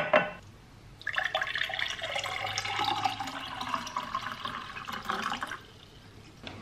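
Water pours into a glass, rising in pitch as it fills.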